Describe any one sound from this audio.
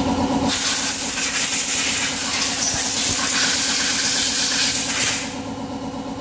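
Compressed air hisses loudly from an air hose.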